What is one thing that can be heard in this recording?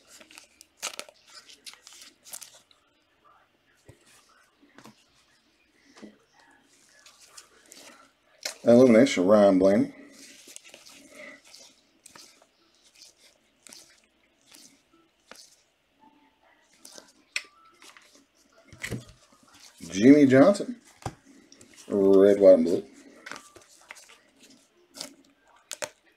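Trading cards are flicked and shuffled by gloved hands.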